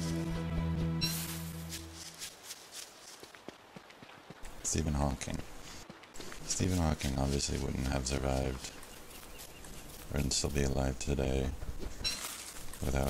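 Light footsteps patter steadily over dry ground.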